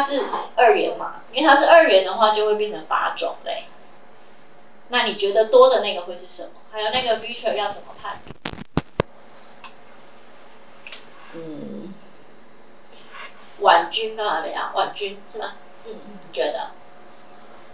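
A woman speaks calmly into a microphone, heard through a loudspeaker in a small room.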